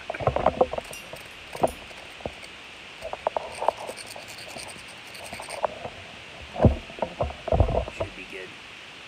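Plastic parts click and rattle as they are handled.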